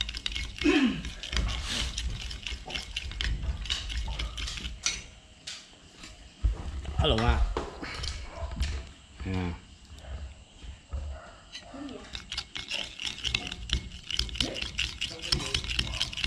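A metal spoon clinks and scrapes against a ceramic bowl.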